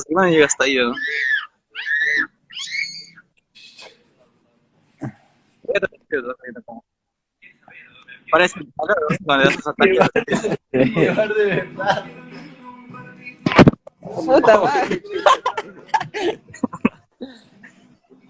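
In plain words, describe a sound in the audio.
A young man talks casually and laughs over an online call.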